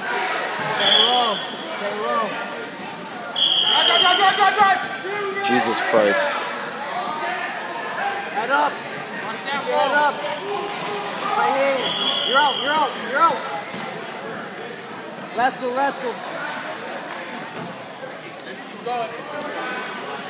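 Several adults shout encouragement in a large echoing hall.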